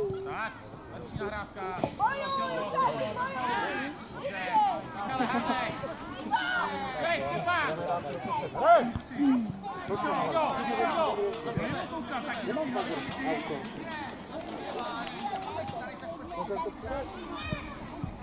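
Children shout and call out excitedly across an open field.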